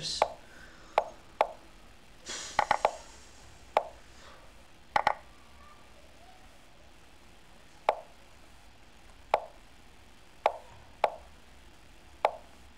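Sharp clicks of chess moves sound from a computer.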